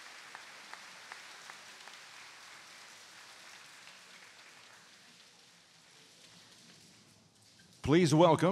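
A crowd murmurs softly in a large hall.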